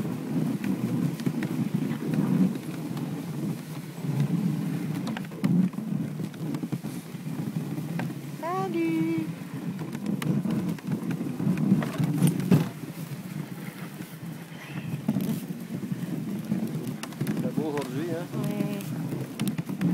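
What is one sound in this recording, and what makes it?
A horse's hooves thud steadily on snow.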